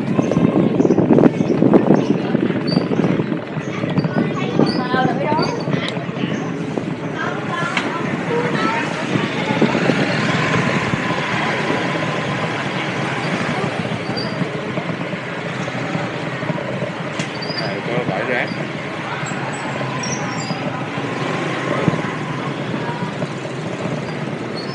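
Noise from a busy street fills the open air.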